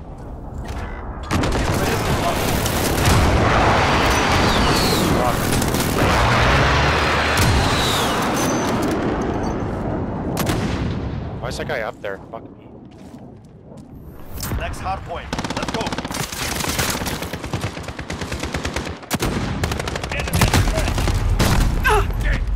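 Rifle shots crack loudly, one at a time.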